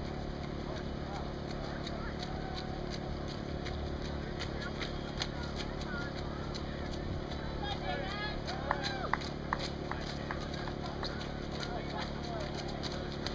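Runners' footsteps slap on wet pavement, passing close by.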